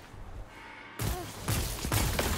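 A gun fires in a video game.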